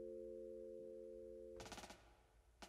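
A mallet instrument holds a ringing chord, then stops.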